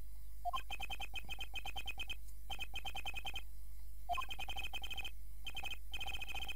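Rapid, high electronic blips tick in quick bursts as game text types out.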